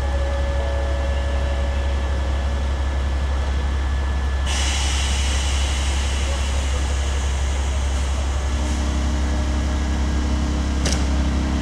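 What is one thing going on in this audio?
Train wheels rumble and squeal on the rails.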